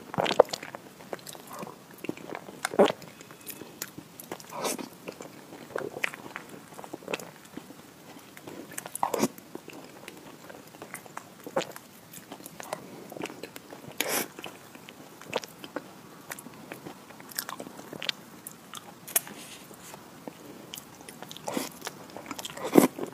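A young woman chews soft food with wet, smacking sounds close to a microphone.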